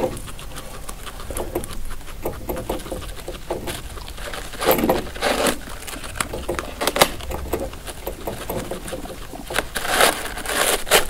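A guinea pig munches and crunches dry hay up close.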